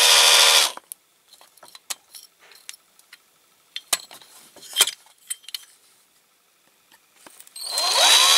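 Metal parts clink and rattle as a hand handles them.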